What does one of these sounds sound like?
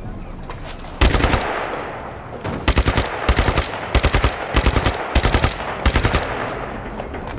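A gun fires in loud rapid bursts.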